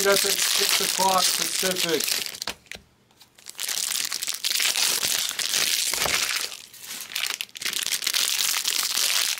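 Stacks of cards rustle and flick as hands sort through them.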